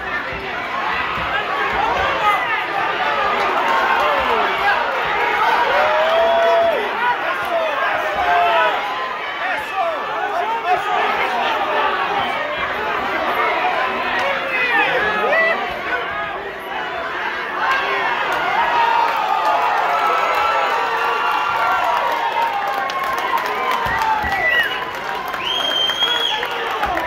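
A large crowd of men and women shouts and cheers loudly in an echoing hall.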